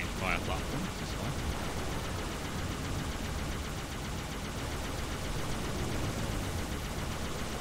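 A hovering vehicle's engine hums steadily.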